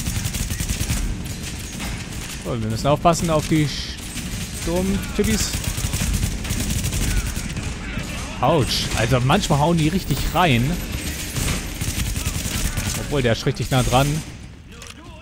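Gunshots rattle in rapid bursts.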